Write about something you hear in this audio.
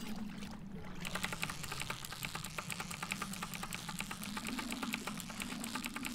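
A fishing reel whirs rapidly as a line is reeled in.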